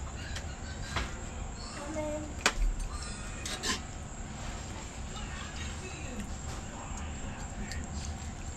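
A metal spoon scrapes and clicks against a pan.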